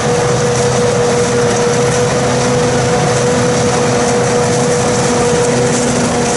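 Chopped crop rushes from a harvester's spout into a trailer.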